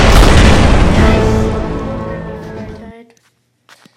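A triumphant game fanfare blares loudly and fades away.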